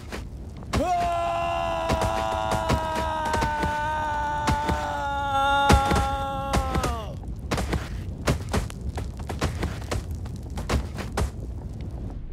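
Soft thuds and knocks sound as a figure tumbles down rocky steps.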